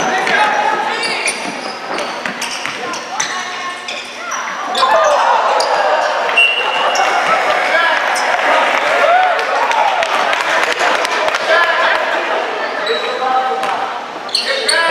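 A crowd of children and adults shouts and cheers in a large echoing gym.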